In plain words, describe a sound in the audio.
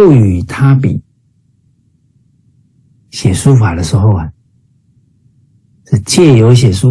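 A middle-aged man speaks with animation through an online call, in short bursts.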